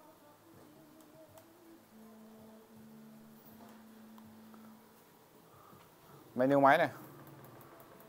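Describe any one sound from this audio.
A projector fan hums steadily.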